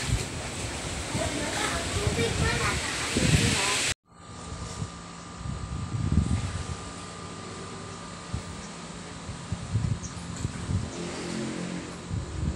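Water laps and splashes gently in a pool.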